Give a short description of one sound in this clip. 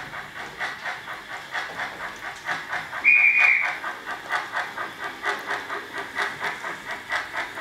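A model train clatters along the track in a steady rhythm.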